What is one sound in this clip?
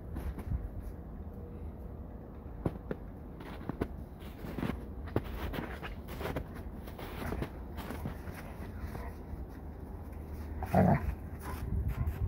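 Two dogs scuffle and crunch through snow.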